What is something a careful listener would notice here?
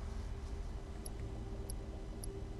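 Soft electronic menu blips sound a few times.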